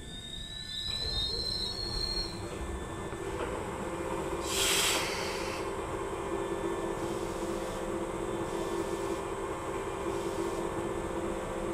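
An electric train motor hums and rises in pitch as the train pulls away.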